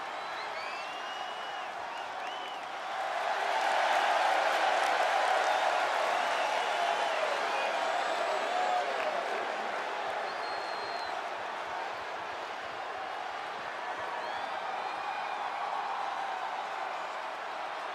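A large crowd cheers and whistles in a big echoing arena, swelling loudly for a while and then settling.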